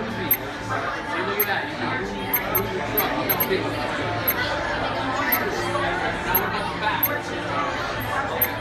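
An arcade racing game plays loud electronic music and sound effects.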